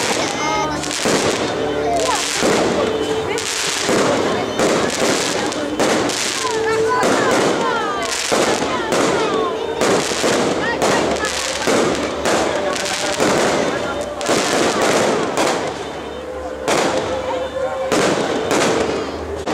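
Firework rockets whistle and crackle as they rise.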